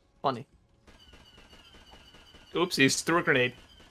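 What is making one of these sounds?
Blaster guns fire laser shots.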